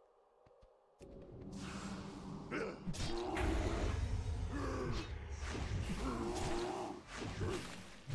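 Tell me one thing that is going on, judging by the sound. Blows land with heavy thuds and clashes in a fight.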